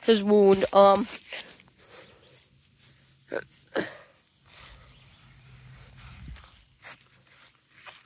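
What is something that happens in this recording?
Footsteps rustle through dry leaves on grass.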